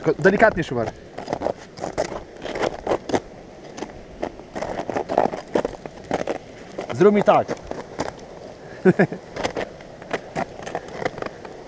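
Crampons scrape and crunch on ice.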